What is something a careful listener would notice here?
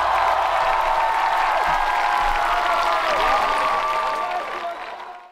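A large crowd cheers and screams loudly, then fades away.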